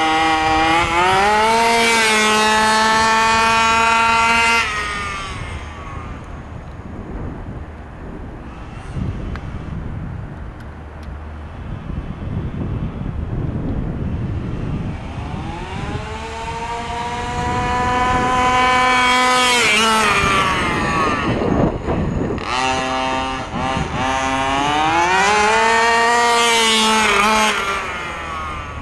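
The two-stroke petrol engine of a large-scale radio-controlled buggy revs hard, rising and falling in pitch.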